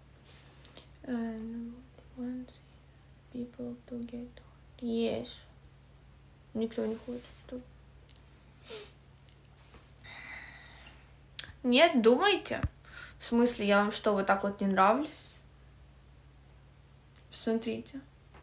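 A young woman speaks softly and close up, in short phrases with pauses.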